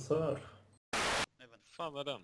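A short burst of static hisses.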